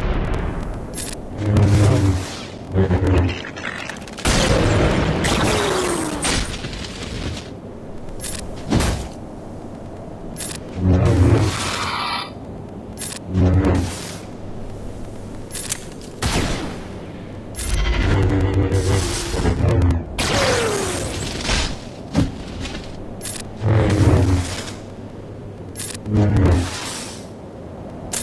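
Blasters fire in short bursts.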